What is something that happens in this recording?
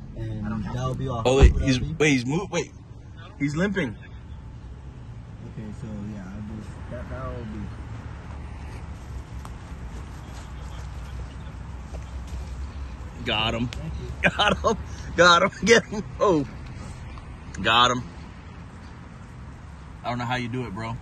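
A young man talks excitedly close by, in short bursts.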